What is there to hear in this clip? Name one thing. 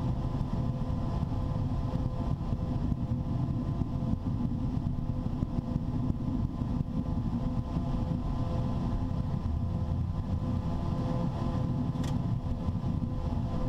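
Jet engines roar steadily as an airliner rolls down a runway.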